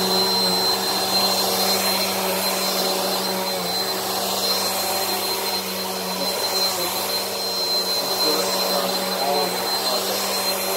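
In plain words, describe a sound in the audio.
A vacuum cleaner brushes over carpet with a rushing hiss.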